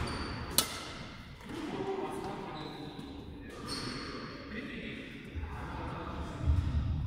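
Sports shoes squeak and patter on a hard court floor.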